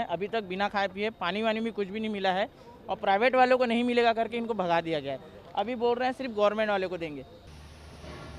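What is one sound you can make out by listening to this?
A young man speaks steadily into a microphone close by.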